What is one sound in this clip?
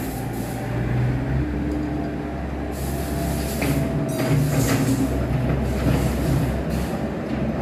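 Rubble and rocks clatter and scrape against an excavator bucket.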